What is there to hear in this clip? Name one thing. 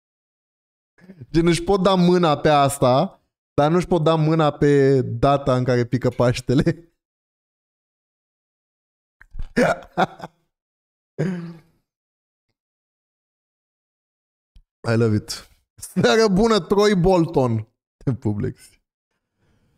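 A young man talks and laughs with animation, close into a microphone.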